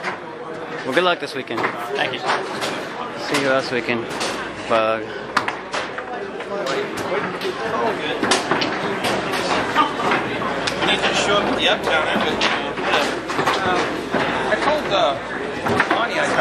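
A crowd of adults chatters throughout a large echoing hall.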